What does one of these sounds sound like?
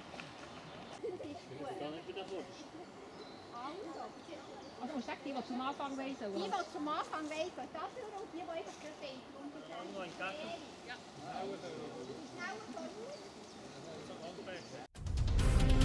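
A woman speaks loudly to a group outdoors, giving instructions.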